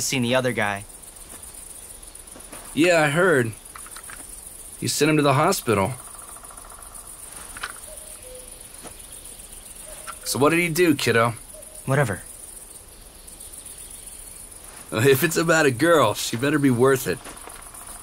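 A young man speaks calmly at close range.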